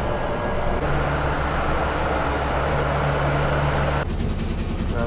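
A bus engine roars loudly as the bus drives past close by.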